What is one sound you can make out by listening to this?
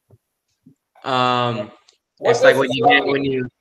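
A man speaks clearly and calmly, as if lecturing.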